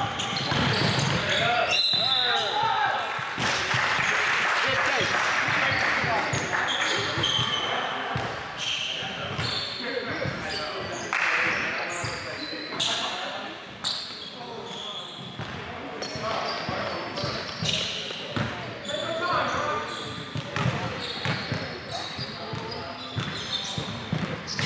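A basketball bounces on the wooden floor.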